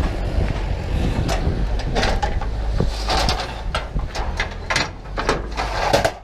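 Metal latches clank and click as they are worked by hand.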